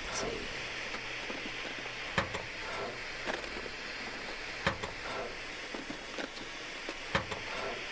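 A wooden drawer rattles as it is searched.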